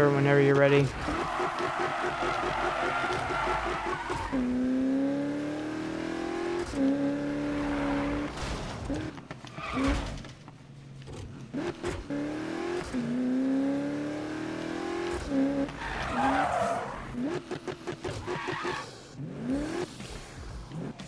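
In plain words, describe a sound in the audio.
Tyres screech as a car drifts around bends.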